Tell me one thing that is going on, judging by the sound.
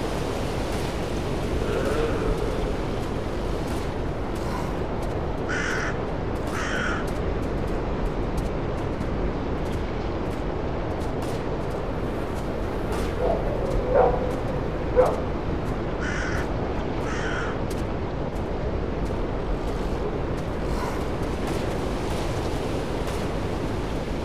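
Wind blows steadily through forest trees.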